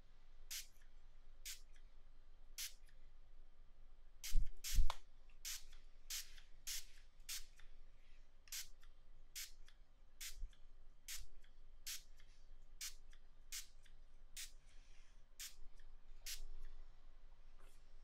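Fingers tap close to a microphone in short, crisp clicks.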